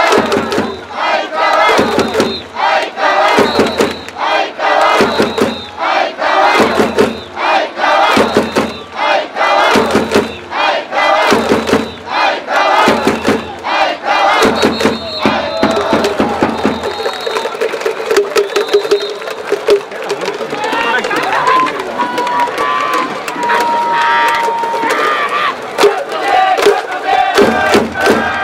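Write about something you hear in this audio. A large crowd chants and cheers loudly in an open stadium.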